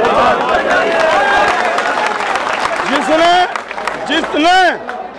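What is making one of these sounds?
A crowd of men talk and shout outdoors.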